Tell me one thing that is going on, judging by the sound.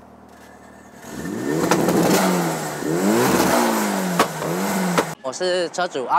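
A car exhaust roars and pops as the engine revs.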